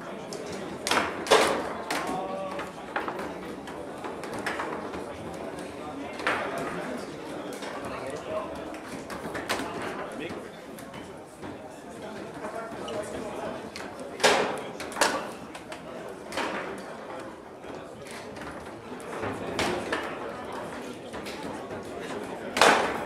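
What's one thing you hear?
A ball knocks sharply against the figures and walls of a table football game.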